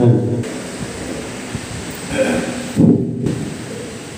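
An elderly man speaks calmly into a microphone, heard through loudspeakers in an echoing hall.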